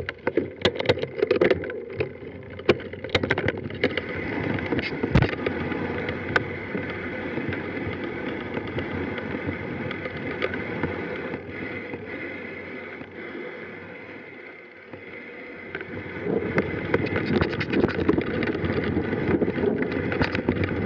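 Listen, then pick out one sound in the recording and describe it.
Wind rushes steadily past the microphone outdoors.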